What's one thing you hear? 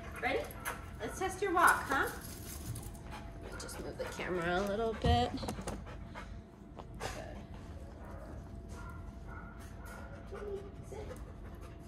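A dog's claws tick on a hard floor.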